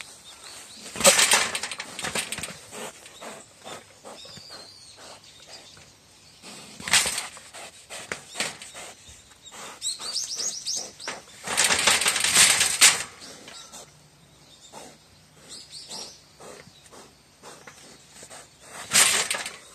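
A wild boar rattles and bangs against a metal cage.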